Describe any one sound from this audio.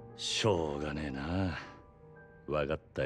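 A man speaks in a low, tired voice, close by.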